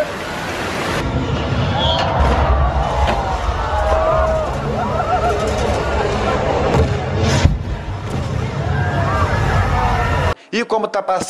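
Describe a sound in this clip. An explosion booms and rumbles deeply.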